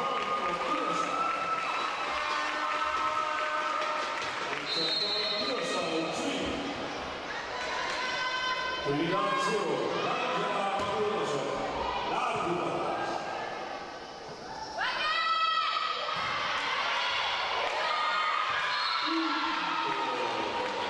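Volleyball players shout and call to each other in a large echoing hall.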